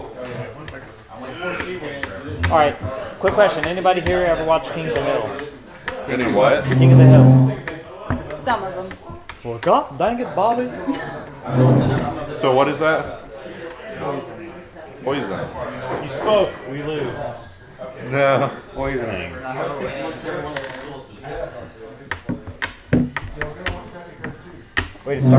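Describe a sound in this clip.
Game pieces click and tap on a wooden table.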